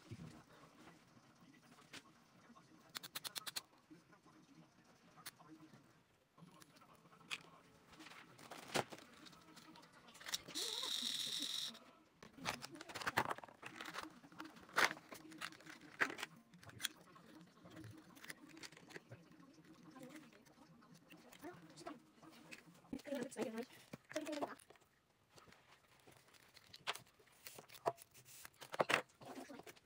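Small plastic parts click and snap as they are handled close by.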